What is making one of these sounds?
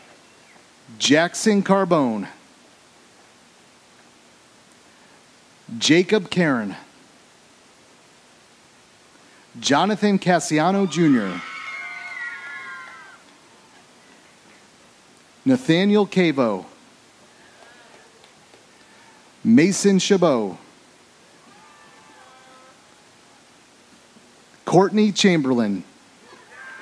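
A man reads out over a loudspeaker in short, echoing bursts.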